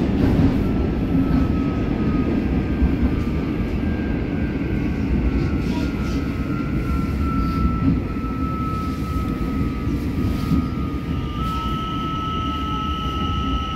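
Train wheels squeal in a long, thin whine.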